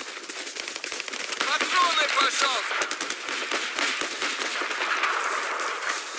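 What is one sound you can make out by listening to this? Footsteps crunch quickly over gravel.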